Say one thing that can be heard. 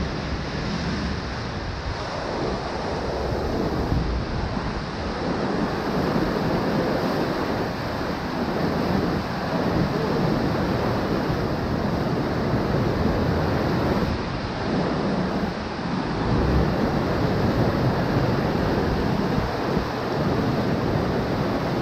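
Rushing water churns and splashes around a speeding boat.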